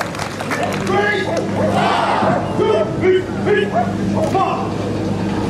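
A young woman shouts commands loudly outdoors.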